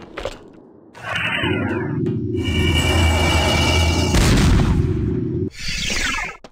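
A loud blast booms and rumbles.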